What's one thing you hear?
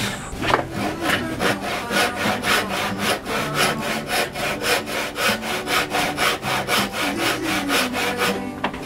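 A hand saw cuts through wood with quick, steady rasping strokes.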